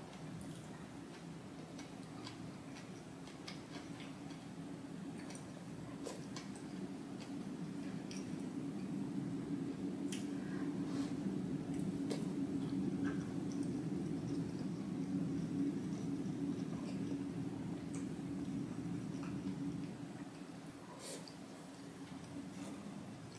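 A young woman slurps noodles loudly, close up.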